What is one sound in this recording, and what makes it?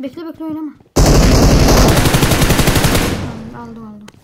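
A gun fires a rapid burst.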